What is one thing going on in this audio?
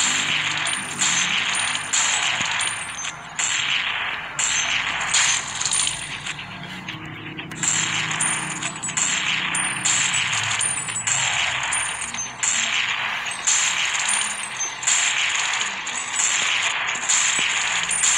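Rifle shots fire again and again in quick bursts.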